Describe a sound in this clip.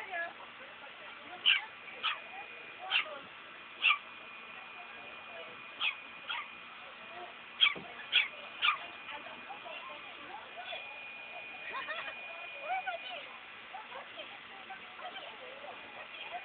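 A small toy car's motor whirs on grass.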